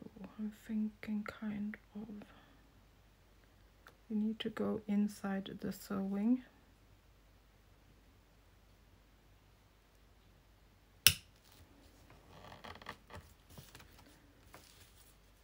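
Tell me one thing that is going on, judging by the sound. A marker pen scratches softly across a hard surface.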